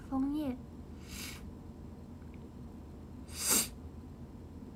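A young woman sniffs sharply, close by.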